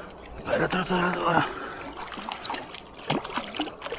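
A fish splashes and thrashes at the water's surface close by.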